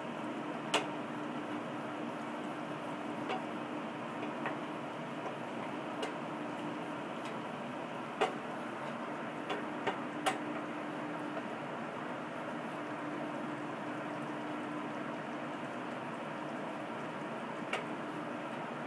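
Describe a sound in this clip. A wooden spatula scrapes and knocks against a pan.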